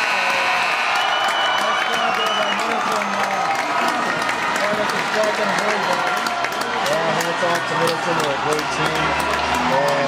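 Young male hockey players shout and whoop in celebration.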